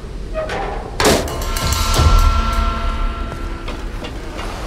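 Metal creaks and scrapes as something is pried open.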